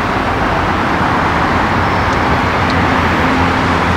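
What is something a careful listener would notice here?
Buses and cars drive past on a road.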